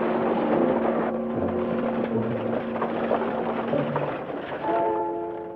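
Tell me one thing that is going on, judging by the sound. Horses gallop, pulling a rattling stagecoach.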